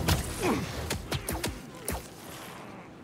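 Punches land with sharp, heavy thuds.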